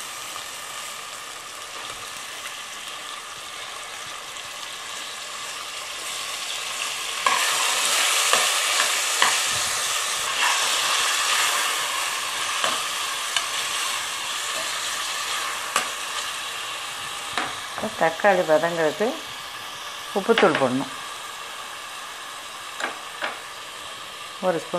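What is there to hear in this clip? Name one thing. Vegetables sizzle and hiss in a hot pan, growing louder partway through.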